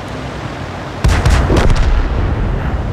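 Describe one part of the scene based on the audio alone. A tank cannon fires with a loud, echoing boom.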